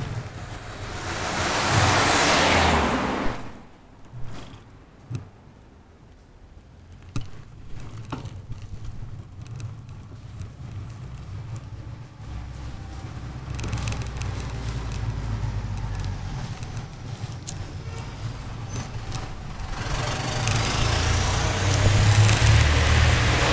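Wind rushes past a moving bicycle outdoors, swelling and easing.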